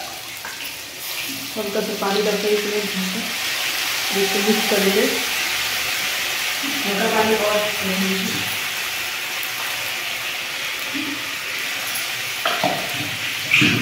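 Oil sizzles steadily in a pan.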